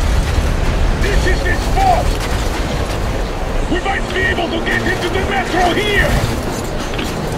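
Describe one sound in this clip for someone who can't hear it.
A man speaks calmly nearby over the wind.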